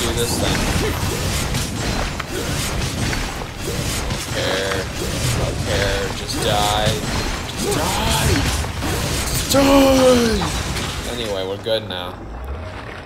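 Magical blasts crackle and boom in a fast fight.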